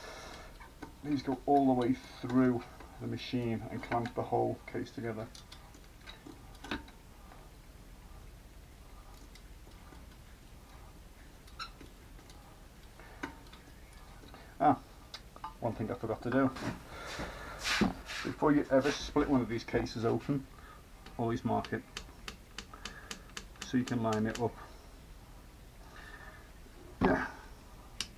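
A metal tool clicks and scrapes against a metal housing.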